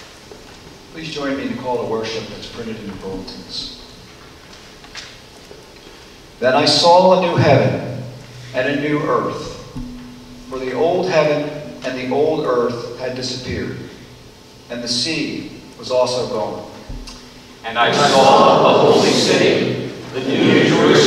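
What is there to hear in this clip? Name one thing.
A man speaks calmly through a microphone and loudspeakers in a large echoing room.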